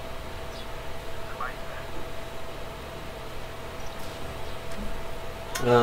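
A man speaks slowly over an online call.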